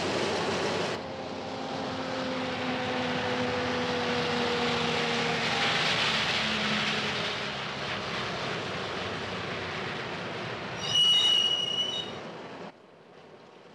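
A heavy truck engine rumbles and drones.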